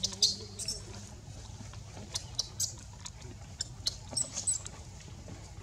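A baby monkey suckles with soft, wet smacking sounds.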